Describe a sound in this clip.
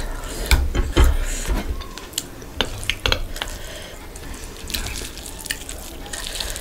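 Fingers squish and mix rice and curry by hand, close to the microphone.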